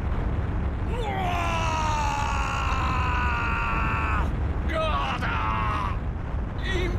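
A man screams loudly and at length.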